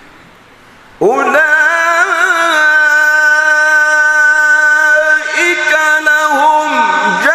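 A man chants in a long, sustained, wavering voice through a microphone and loudspeakers.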